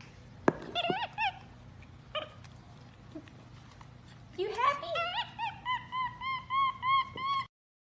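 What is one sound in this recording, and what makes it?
A small monkey squeaks and chirps in high, rising calls.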